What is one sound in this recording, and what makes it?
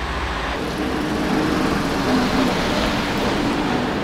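A trolleybus drives by.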